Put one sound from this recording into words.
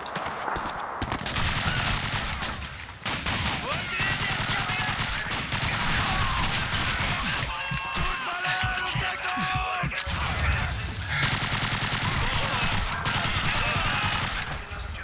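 A submachine gun fires rapid bursts in an echoing room.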